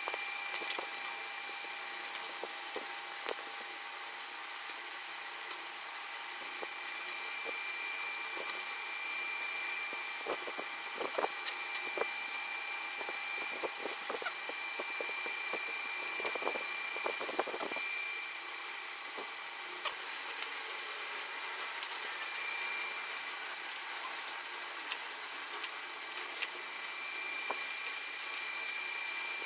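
Fingers tap and scrape on a hard plastic panel.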